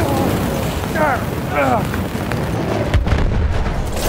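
Flames crackle and roar close by.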